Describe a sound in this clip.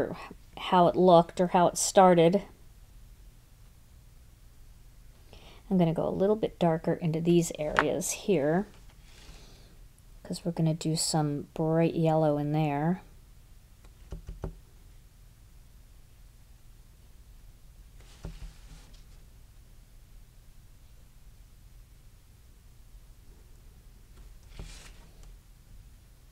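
A felt-tip pen scratches softly across paper.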